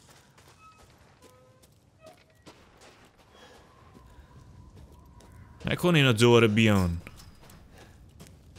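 Footsteps crunch softly through snow.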